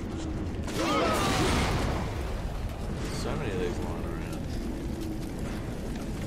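A fire burns with a roaring whoosh.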